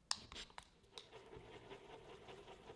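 A wooden stick scrapes softly, stirring glue.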